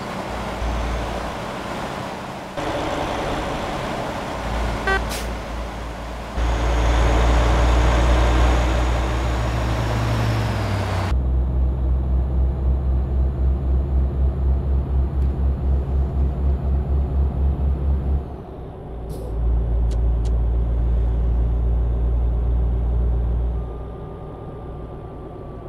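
A heavy truck engine drones low and steady.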